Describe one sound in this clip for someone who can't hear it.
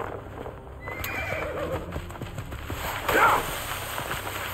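A horse gallops over sand.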